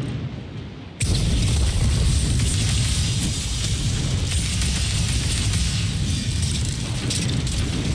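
Rapid gunfire booms and crackles.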